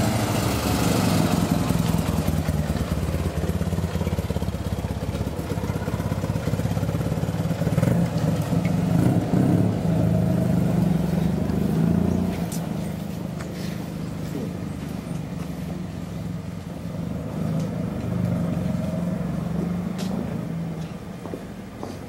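A small car engine rumbles and revs nearby.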